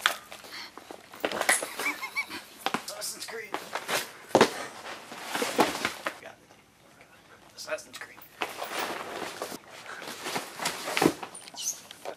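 A cardboard box scrapes and thumps against the floor.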